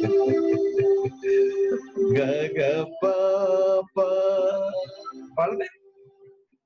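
A man sings into a microphone, heard over an online call.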